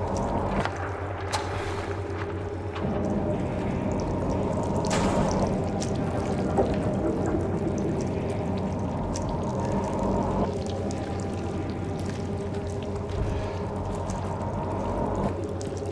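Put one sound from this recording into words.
Footsteps shuffle slowly on a gritty floor.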